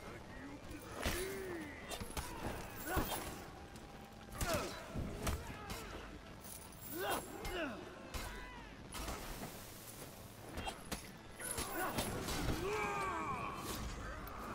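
Swords clash and strike again and again.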